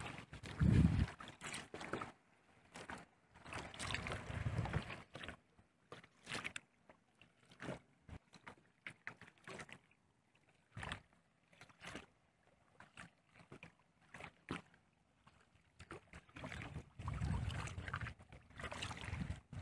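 A paddle dips and splashes in the water in bursts.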